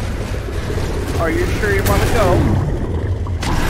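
A large sea creature roars loudly.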